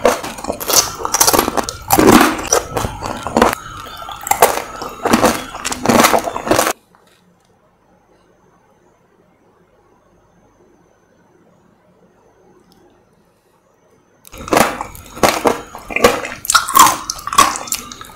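A woman chews juicy fruit with loud wet crunching close to a microphone.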